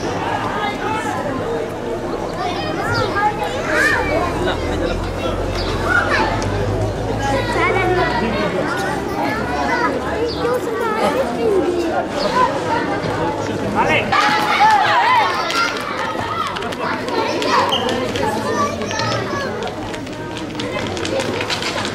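A crowd of men and women shout and chatter outdoors.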